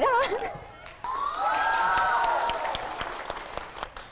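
An audience calls out in a long teasing cheer.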